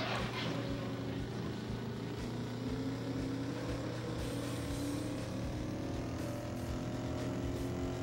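A car engine revs higher and higher as it speeds up.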